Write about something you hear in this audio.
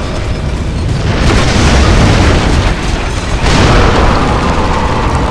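A loud blast rumbles and roars.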